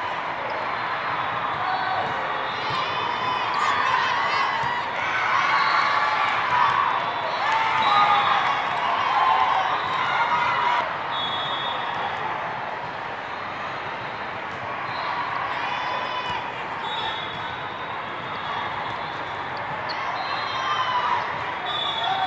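A crowd chatters and cheers throughout a large echoing hall.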